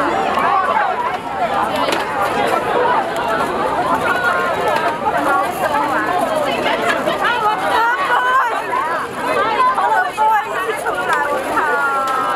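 A crowd of young women chatters and calls out excitedly close by.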